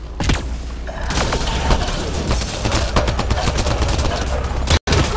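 Rapid gunshots crackle in a firefight.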